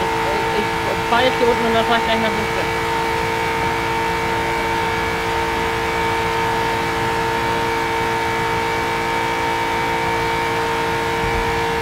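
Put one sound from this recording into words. A racing car engine drones at high speed, steady and loud.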